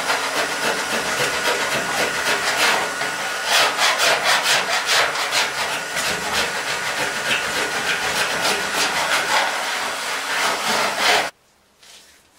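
A pneumatic tool rattles loudly against sheet metal.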